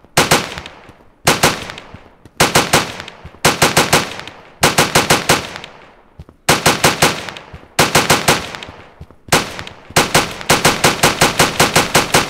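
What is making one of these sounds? Guns fire in rapid bursts of sharp shots.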